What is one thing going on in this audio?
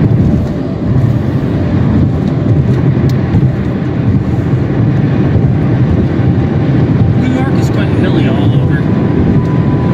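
A vehicle drives along a highway with a steady low road rumble heard from inside.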